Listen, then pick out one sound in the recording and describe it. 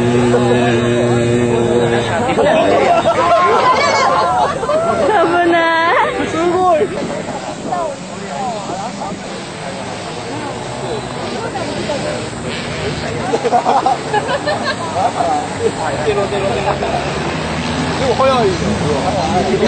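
A small motorbike engine revs and whines up and down nearby.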